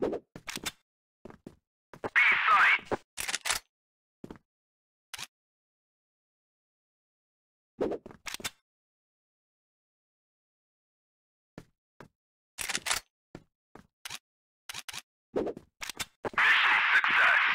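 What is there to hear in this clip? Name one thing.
A gun is swapped with short metallic clicks.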